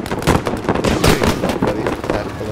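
A large explosion booms nearby.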